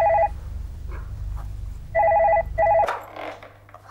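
A telephone rings in short bursts.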